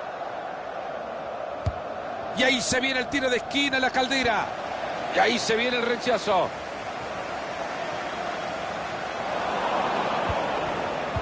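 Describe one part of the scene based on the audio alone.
A large stadium crowd murmurs and roars steadily in the distance.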